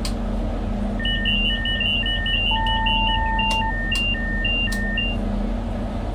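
A warning tone beeps repeatedly in a driver's cab.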